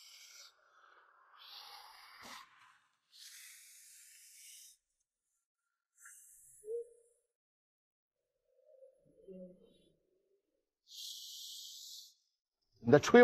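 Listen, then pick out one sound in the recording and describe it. A young man blows air in short puffs.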